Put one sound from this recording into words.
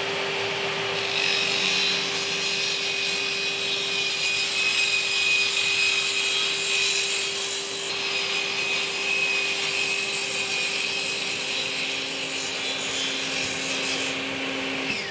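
A table saw blade cuts through a wooden board with a loud rasping buzz.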